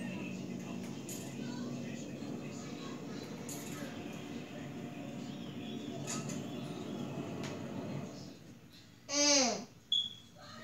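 Video game sounds play from a television.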